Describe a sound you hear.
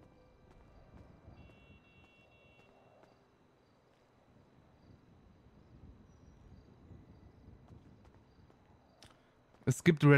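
Footsteps tap softly on paving at a steady walking pace.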